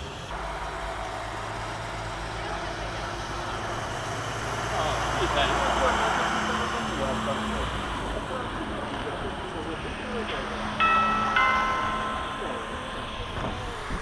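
A train rumbles and rattles past close by, then fades away.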